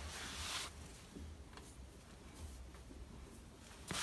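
Metal parts clink and scrape softly as a hand fits a hub.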